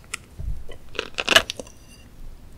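A spoon scrapes across a plate.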